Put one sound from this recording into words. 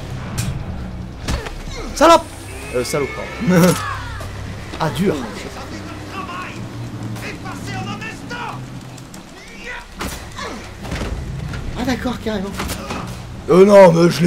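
Bodies thud and scuffle on a hard floor.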